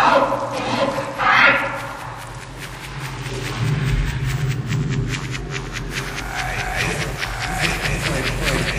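Dance music with a steady thumping beat plays.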